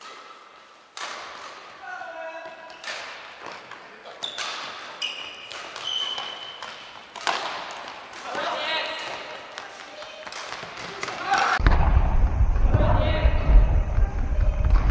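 A ball thumps as it is kicked, echoing in a large hall.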